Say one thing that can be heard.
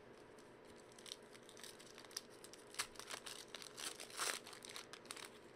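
A foil wrapper crinkles and rustles as it is torn open.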